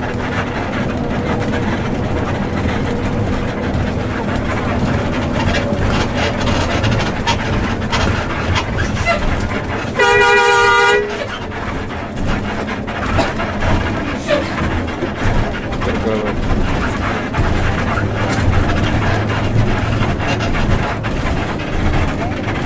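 Tyres roll on a road surface with a steady hum.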